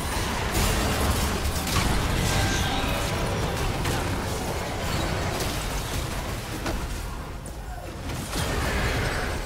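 Game characters clash with sharp hits.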